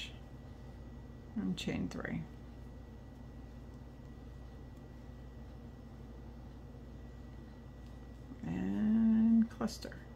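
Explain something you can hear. A crochet hook rubs softly against yarn.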